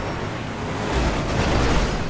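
Cars crash together with a loud bang.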